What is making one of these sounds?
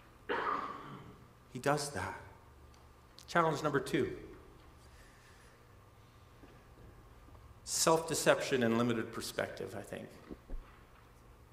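A middle-aged man speaks calmly into a headset microphone, with pauses between phrases.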